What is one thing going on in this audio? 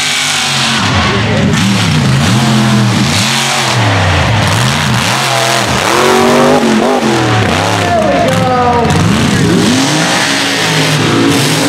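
A monster truck engine roars and revs up and down repeatedly.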